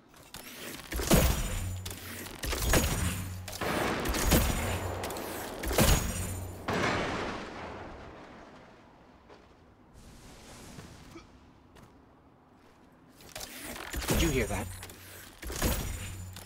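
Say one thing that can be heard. A weapon fires loud, booming blasts one after another.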